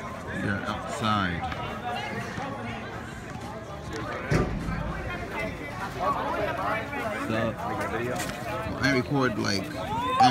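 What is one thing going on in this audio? A crowd of young people chatter outdoors.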